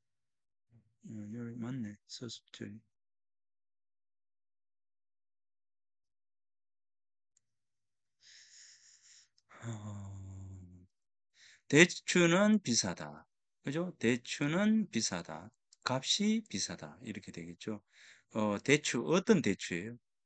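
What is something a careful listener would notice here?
A middle-aged man speaks calmly into a microphone, heard as if over an online call.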